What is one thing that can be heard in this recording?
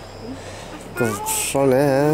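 A small child babbles in a high voice.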